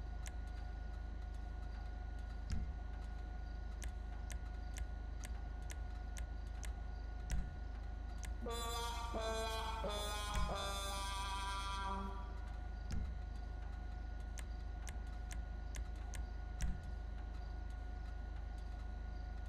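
Soft menu clicks tick at a steady pace.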